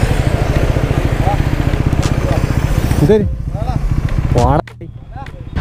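A motorcycle engine idles with a steady throbbing, then cuts off.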